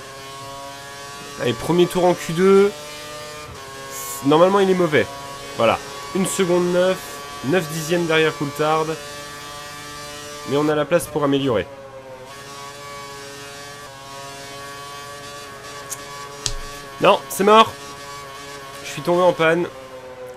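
A racing car engine whines steadily at high speed.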